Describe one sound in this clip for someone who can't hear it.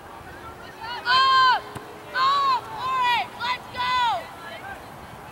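Young women shout loudly to each other across an open field.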